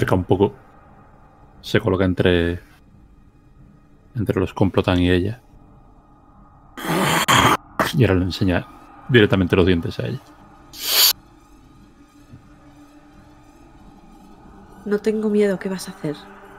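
A middle-aged man talks with animation over an online call, in short bursts.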